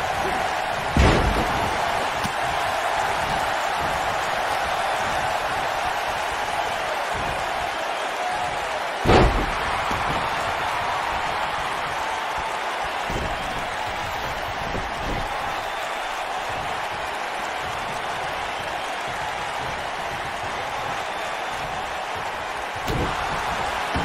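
Bodies slam onto a wrestling ring with heavy thuds.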